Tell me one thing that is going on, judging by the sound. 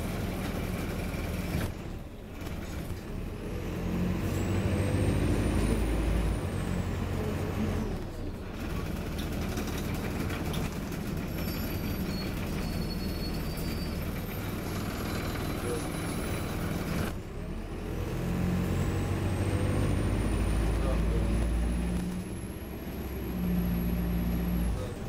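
A bus engine rumbles and hums steadily while the bus drives.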